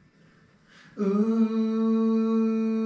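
A saxophone plays a long, steady note.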